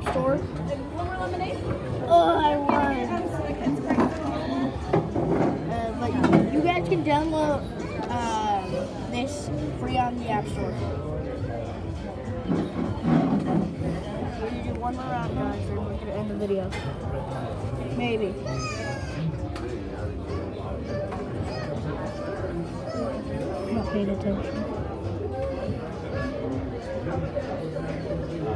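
Cheerful game music plays through a small phone speaker.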